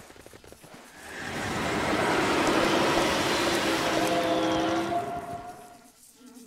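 A magical whirlwind roars and swirls loudly.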